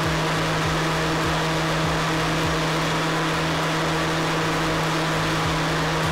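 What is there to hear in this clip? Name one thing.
Liquid churns inside a blender jug.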